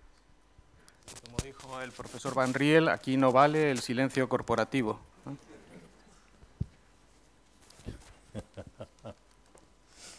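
An older man speaks calmly through a microphone and loudspeakers.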